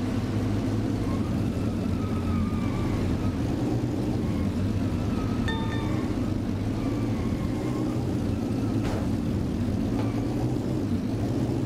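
Racing car engines roar and whine steadily.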